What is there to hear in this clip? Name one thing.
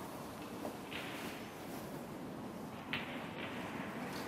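A referee sets a ball down softly on a snooker table.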